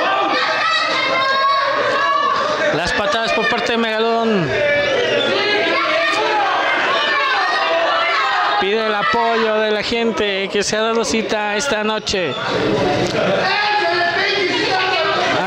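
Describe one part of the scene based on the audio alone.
A crowd of men and women shouts and cheers loudly indoors.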